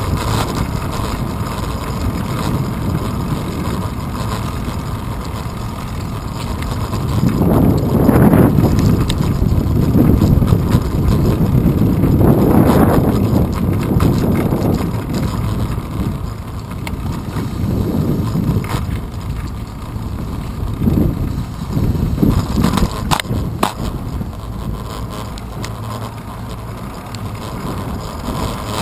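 Bicycle tyres roll steadily over pavement.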